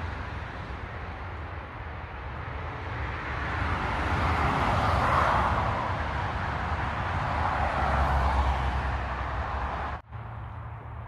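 Wind rushes and rustles through trees outdoors.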